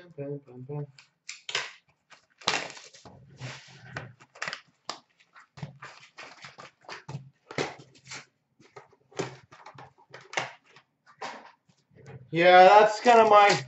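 Cardboard boxes rustle and tap as they are handled.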